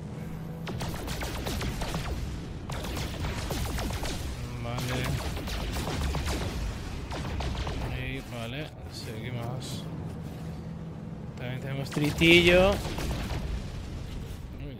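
A spaceship engine hums with a steady low drone.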